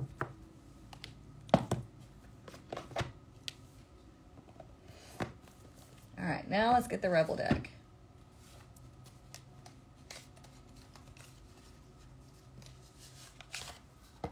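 A small cardboard box taps and rustles as it is handled on a table.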